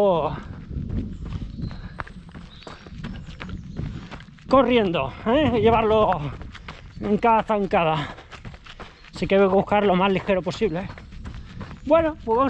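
Footsteps thud on a dirt path at a steady jogging pace.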